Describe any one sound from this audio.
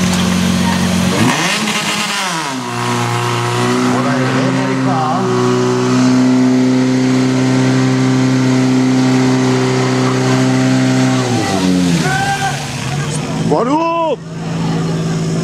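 A pump engine revs up and down sharply.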